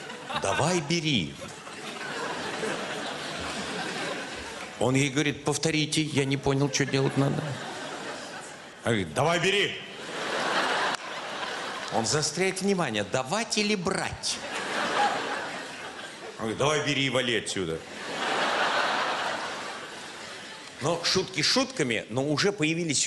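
An elderly man speaks with expression into a microphone on an echoing stage.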